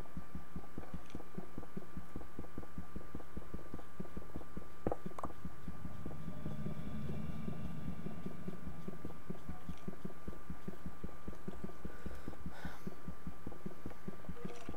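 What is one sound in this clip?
A pickaxe taps rapidly and steadily against hard stone.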